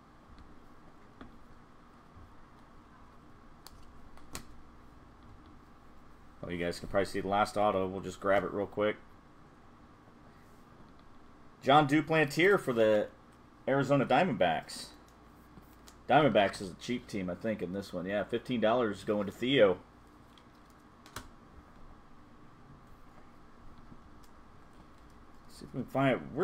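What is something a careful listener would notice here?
Trading cards rustle and slide as hands shuffle them.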